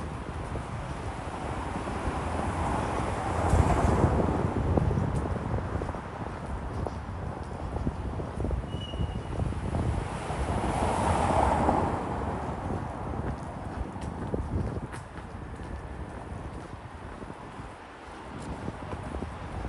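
Distant city traffic hums steadily, with cars swelling past now and then.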